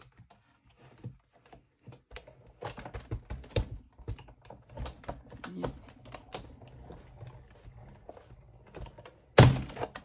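A hand crank turns with a rapid clicking and rumbling.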